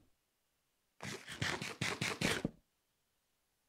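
Food is munched in rapid crunchy bites.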